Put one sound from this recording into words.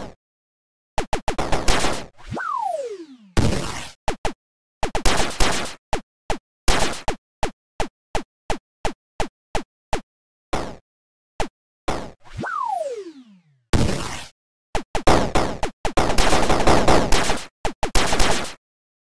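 Retro video game laser shots zap in quick bursts.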